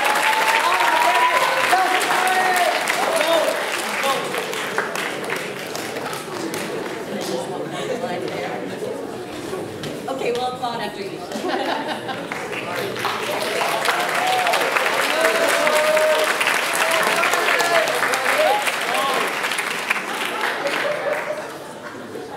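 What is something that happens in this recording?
An audience claps and cheers in a large hall.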